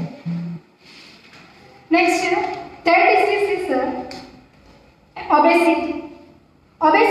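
A woman speaks clearly and steadily, close by.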